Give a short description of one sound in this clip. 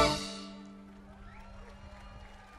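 A band plays a final loud chord outdoors that rings out and fades away.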